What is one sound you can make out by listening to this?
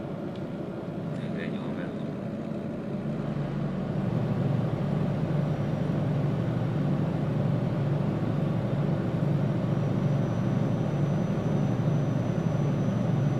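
A truck engine hums steadily and grows louder as it speeds up.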